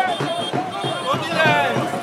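A young man shouts excitedly close by.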